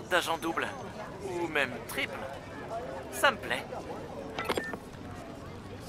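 Another young man answers, heard through a phone.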